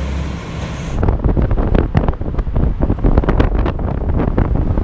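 Wind rushes past during a fast ride along a highway.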